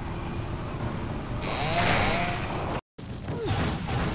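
A motorcycle crashes and tumbles over.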